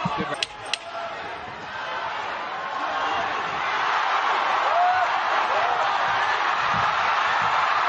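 Gloved punches land with dull thuds.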